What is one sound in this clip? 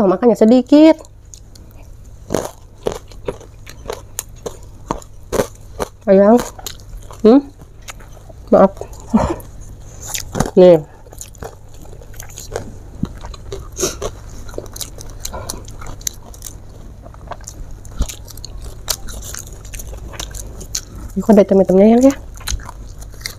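A young woman chews and smacks crunchy food close to a microphone.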